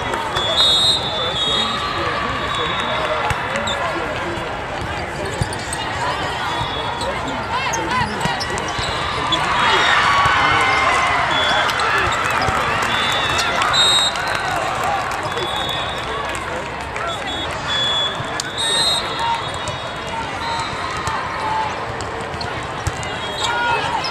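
A crowd chatters and cheers throughout a large echoing hall.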